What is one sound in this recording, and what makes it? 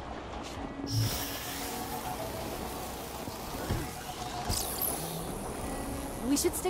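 An electric blast crackles and whooshes.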